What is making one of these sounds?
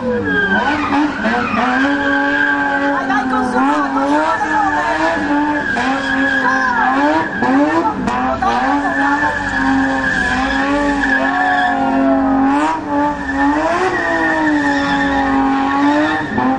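Tyres screech loudly on asphalt.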